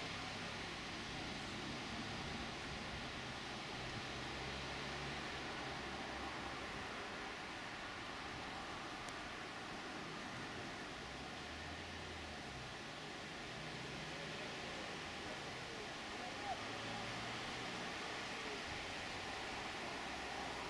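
Wheels clatter on the rails.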